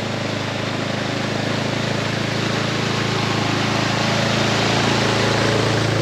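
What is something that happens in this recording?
Water splashes under the wheels of an all-terrain vehicle.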